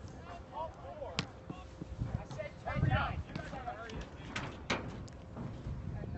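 A soccer ball is kicked with dull thuds in the distance.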